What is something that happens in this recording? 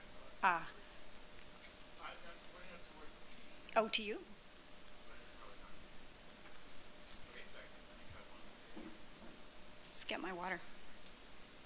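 A young woman speaks in short bursts through a microphone.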